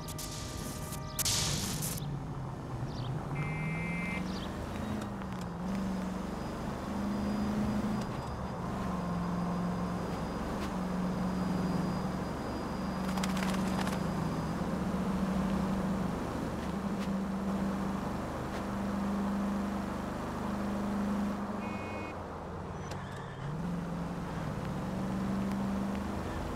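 A car engine hums steadily and rises and falls in pitch as it shifts gears.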